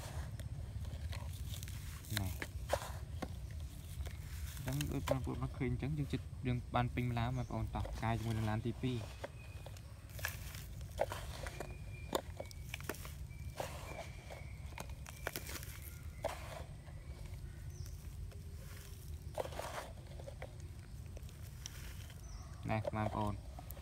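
A plastic toy scoop scrapes into a pile of sand.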